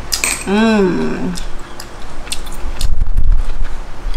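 Shells rattle against each other as a hand picks through a bowl.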